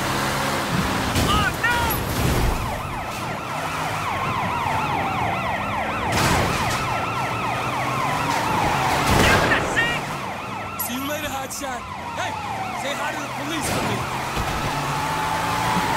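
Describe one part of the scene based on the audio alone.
Tyres screech on a wet road.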